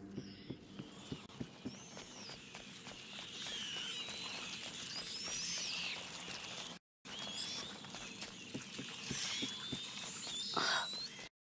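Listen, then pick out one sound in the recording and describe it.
Footsteps patter softly on stone as a child runs.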